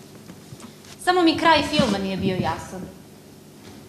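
A young woman speaks with feeling, heard from a distance in a hall.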